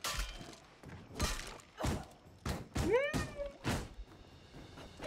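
Sword blows strike in a fight.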